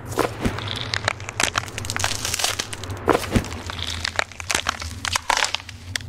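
Scrap metal clatters and clinks as it is rummaged through.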